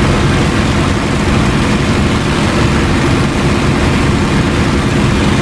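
A propeller engine drones loudly and steadily.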